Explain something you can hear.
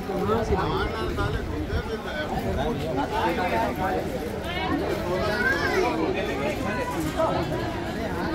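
Men talk over each other in a noisy crowd close by.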